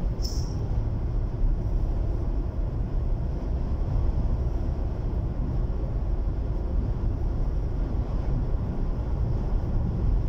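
A vehicle rumbles low and steady from inside while it drives.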